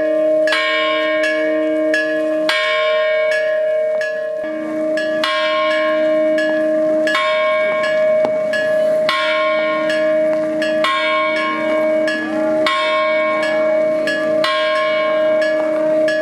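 Church bells ring out steadily nearby.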